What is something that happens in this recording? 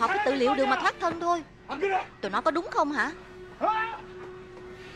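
A middle-aged man shouts angrily, close by.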